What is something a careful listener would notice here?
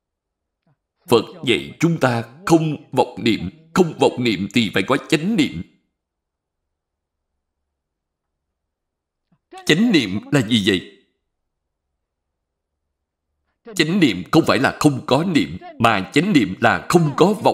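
An elderly man speaks calmly and clearly into a close microphone, in short phrases with pauses.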